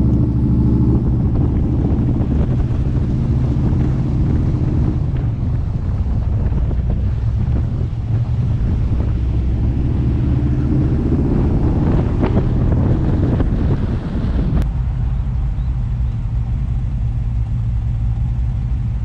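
Wind buffets past a moving car.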